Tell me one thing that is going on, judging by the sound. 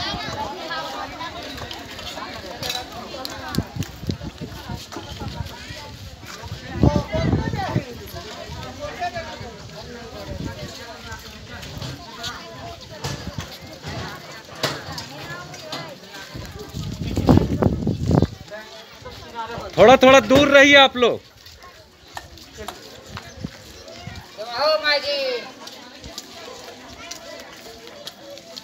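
A crowd of women and children chatters outdoors.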